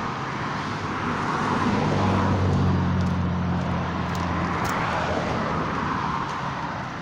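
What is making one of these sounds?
A car drives past on a nearby road, rising and fading.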